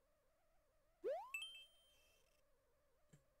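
A video game plays a short rising chime.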